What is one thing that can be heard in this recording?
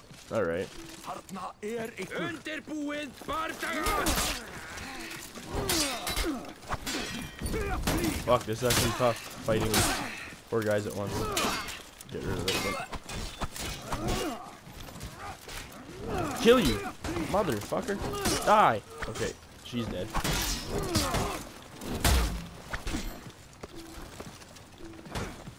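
Warriors grunt and shout as they fight.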